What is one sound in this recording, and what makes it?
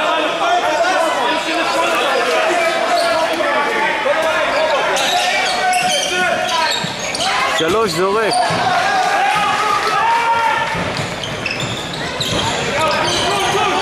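A crowd of spectators chants and cheers in a large echoing hall.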